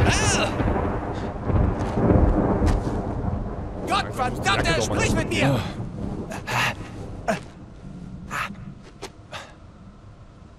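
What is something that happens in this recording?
A man calls out urgently and anxiously.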